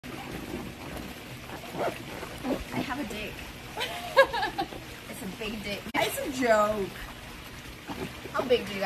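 Water splashes gently in a pool.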